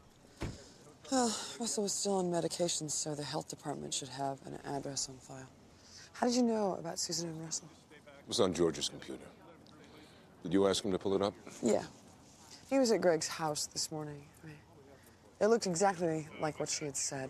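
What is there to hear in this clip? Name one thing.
A woman speaks quietly and seriously nearby.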